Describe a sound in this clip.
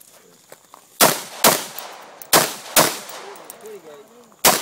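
A rifle fires loud shots in quick succession.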